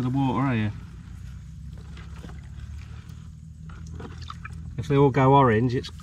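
Water splashes softly as a basin tips its contents into a pond.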